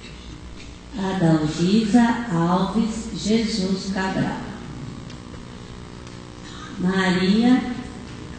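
An older woman reads out slowly through a microphone in an echoing hall.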